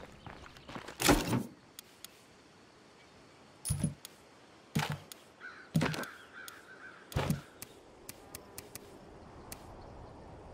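Short interface clicks and thumps sound now and then.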